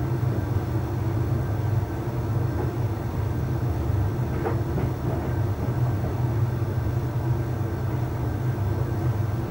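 A tumble dryer hums steadily as its drum turns.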